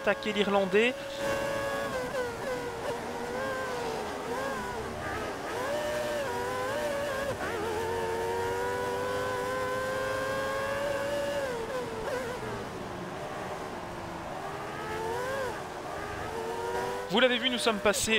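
A racing car engine roars at high pitch, rising and falling as the car speeds up and slows down.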